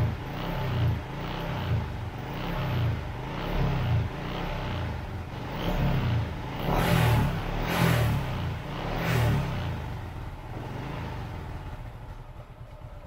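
A motorcycle engine idles with a steady, throbbing rumble.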